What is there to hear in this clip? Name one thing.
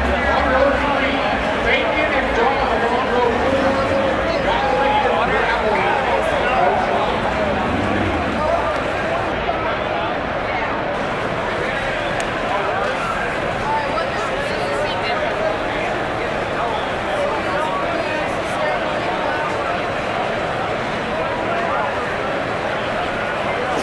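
A crowd of men and women chatters loudly all around, outdoors.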